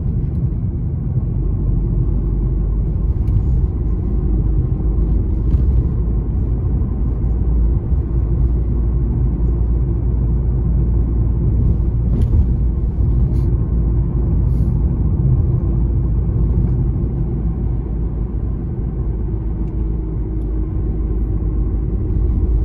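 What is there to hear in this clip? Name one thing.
A car engine hums steadily with road rumble from inside the car as it drives.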